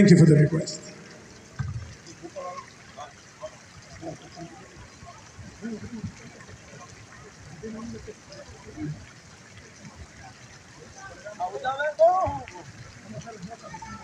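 A man plays a bass guitar.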